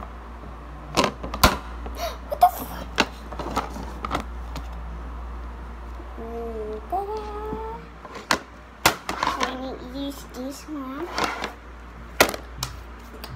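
A plastic makeup palette clicks and clatters as it is handled.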